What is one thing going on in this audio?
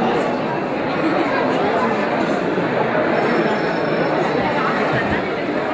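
A crowd of men and women chatter throughout a large room.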